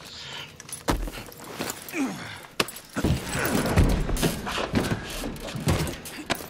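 Boots thud on metal as someone climbs through a hatch.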